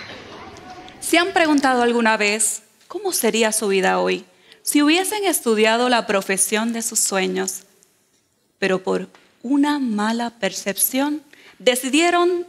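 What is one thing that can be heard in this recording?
A woman speaks clearly and with animation through a microphone.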